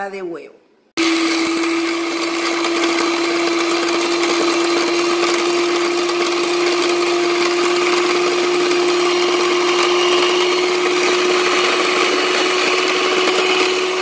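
An electric hand mixer whirs steadily, its beaters churning liquid in a glass bowl.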